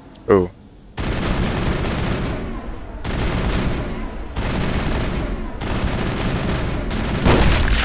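A gun fires in long rapid bursts.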